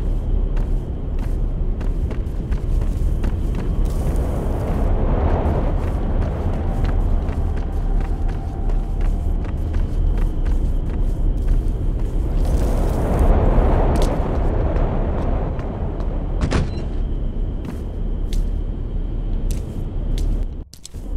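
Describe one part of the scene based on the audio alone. Footsteps thud slowly on a hard floor in a hollow, echoing passage.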